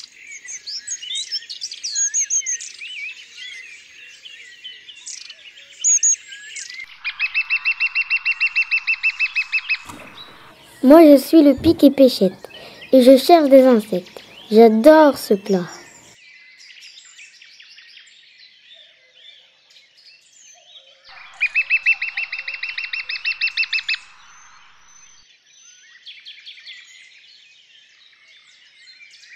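Small birds chirp and twitter.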